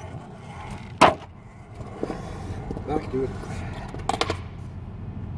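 A skateboard clacks against the ground.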